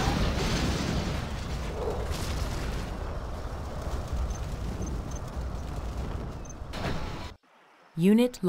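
Explosions boom and rumble in a steady barrage of battle noise.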